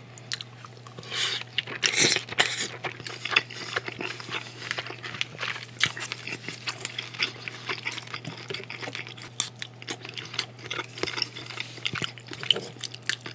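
A man chews and slurps food noisily close to a microphone.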